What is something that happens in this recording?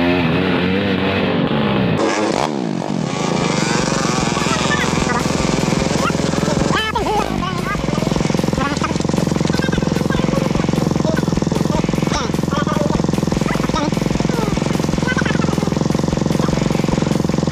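A dirt bike engine idles.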